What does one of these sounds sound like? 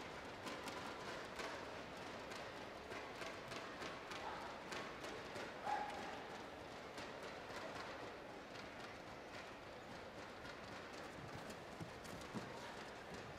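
A large crowd murmurs and cheers in a big echoing hall.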